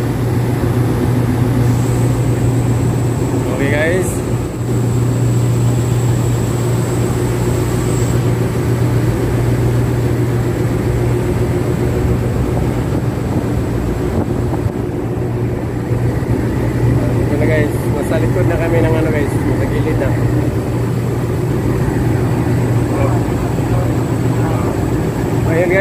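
Sea water splashes against a steel hull.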